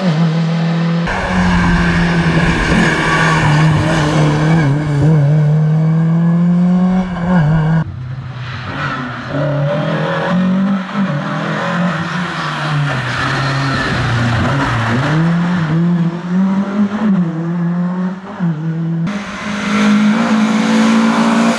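A rally car engine roars loudly, revving up and down through the gears.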